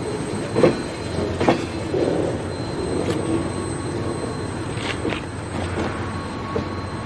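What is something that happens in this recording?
Train wheels clank and squeal on the rails.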